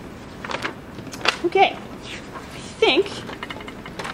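Paper pages rustle as they turn.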